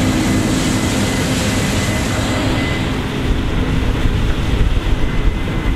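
A combine harvester engine drones loudly close by.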